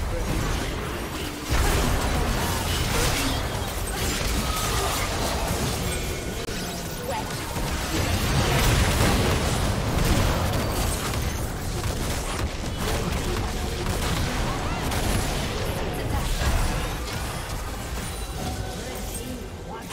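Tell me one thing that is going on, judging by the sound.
Video game spells crackle and blast in a busy battle.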